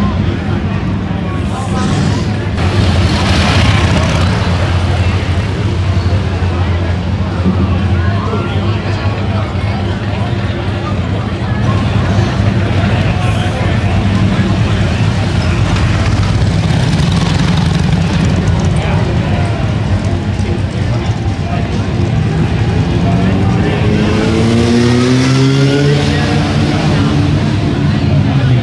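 Motorcycle engines rumble and idle nearby.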